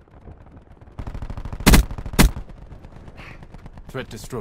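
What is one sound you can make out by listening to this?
An automatic rifle fires in rapid bursts in a video game.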